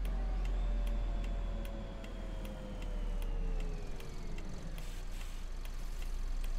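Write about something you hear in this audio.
An indicator ticks rapidly.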